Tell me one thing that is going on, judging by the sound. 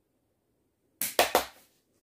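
A man claps his hands twice.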